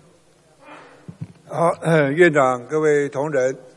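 A man speaks firmly through a microphone.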